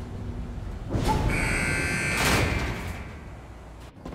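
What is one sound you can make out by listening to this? Heavy metal elevator doors slide open with a rattling clang.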